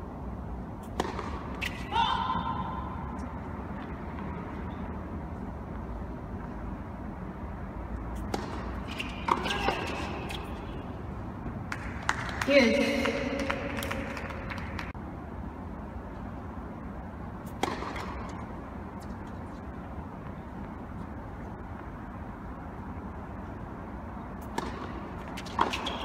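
Tennis racquets strike a ball with sharp pops in a large echoing hall.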